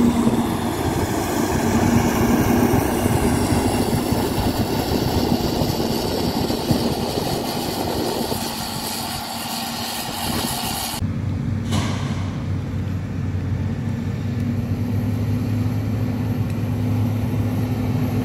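A grader's diesel engine rumbles steadily close by.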